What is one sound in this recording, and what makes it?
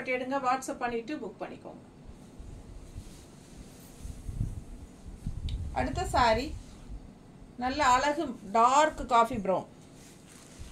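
A woman speaks close by with animation.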